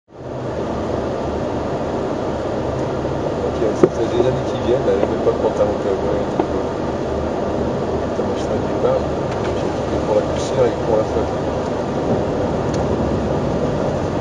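A rally car engine roars steadily from inside the cabin.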